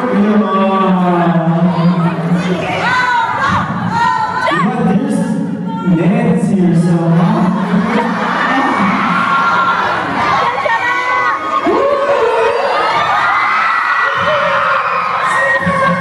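A young man raps energetically into a microphone.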